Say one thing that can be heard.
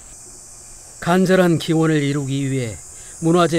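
A middle-aged woman chants in a long, drawn-out voice.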